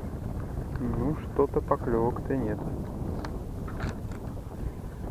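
A fishing reel whirs and clicks as its handle is turned.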